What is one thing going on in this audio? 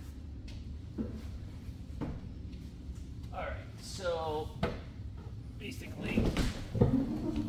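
Footsteps thud on a hollow wooden floor.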